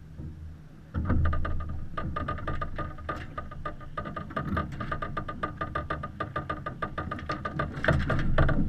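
A winch clicks rapidly as a line is cranked.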